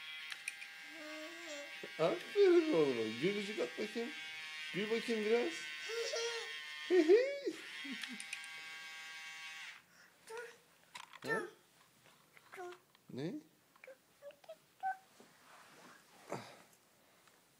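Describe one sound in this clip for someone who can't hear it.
A little boy babbles and chatters close by.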